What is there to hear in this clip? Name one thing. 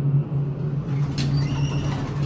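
Elevator doors slide open with a rattle.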